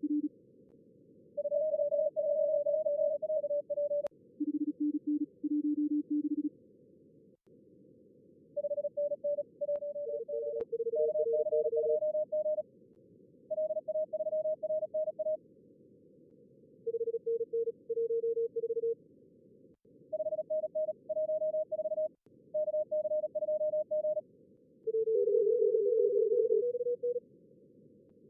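Tones from a radio receiver beep in short bursts over a soft hiss.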